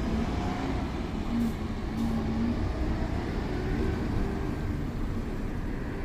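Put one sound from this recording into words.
A truck drives past.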